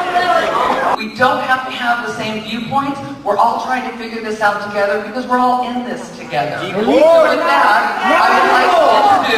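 A woman speaks with animation into a microphone, heard through loudspeakers in a large hall.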